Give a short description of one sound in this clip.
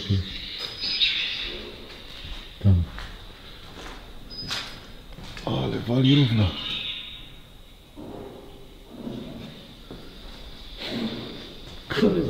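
A young man talks quietly nearby.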